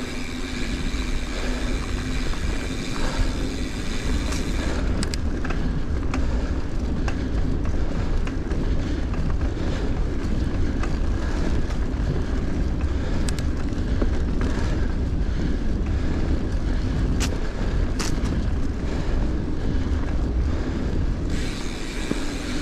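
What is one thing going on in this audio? Bicycle tyres roll and crunch over a sandy dirt track.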